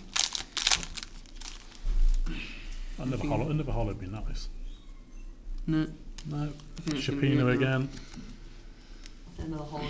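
Playing cards slide and flick against each other.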